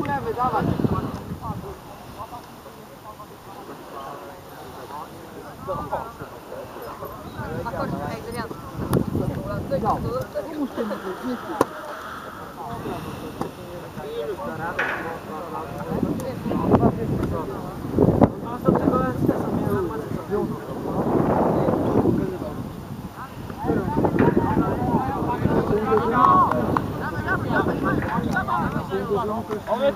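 Teenage boys call out to each other across an open field.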